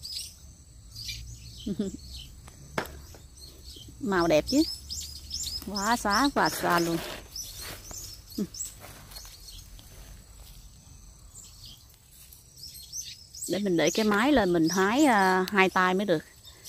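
Leaves rustle softly as a hand brushes through plants.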